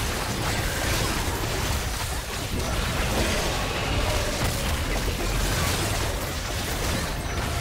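Magic spells crackle and burst during a hectic game battle.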